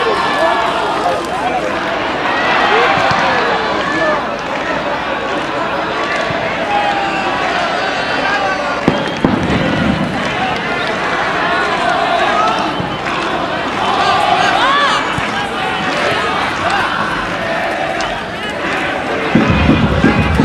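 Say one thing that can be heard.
A large crowd chatters and cheers in the distance.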